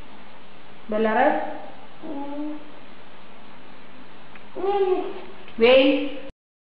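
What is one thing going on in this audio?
A little girl speaks in short, drawn-out phrases close by.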